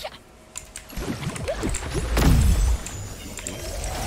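Sword swings whoosh and strike with crashing impacts.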